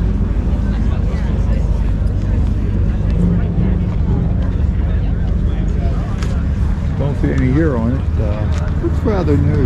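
A crowd of people chatters outdoors in the distance.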